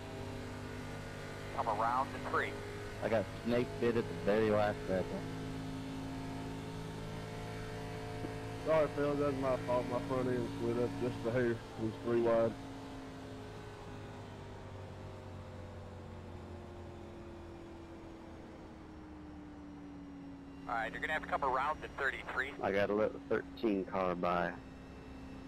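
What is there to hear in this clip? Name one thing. A racing car engine drones steadily, its pitch slowly shifting.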